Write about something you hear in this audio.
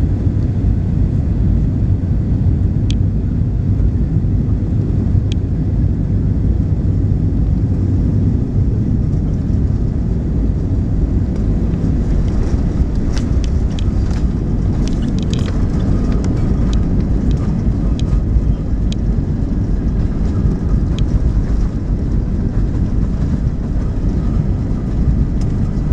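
An aircraft's wheels rumble over the runway.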